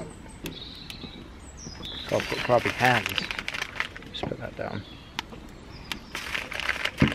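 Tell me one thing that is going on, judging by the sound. A wood fire crackles softly.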